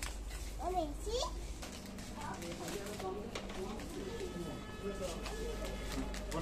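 A snack bag crinkles in a small child's hands.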